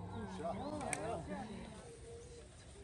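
People talk quietly nearby.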